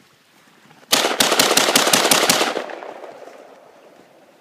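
A rifle fires a rapid burst of shots that echoes outdoors.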